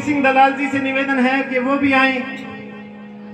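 A man sings through a microphone over loudspeakers, outdoors.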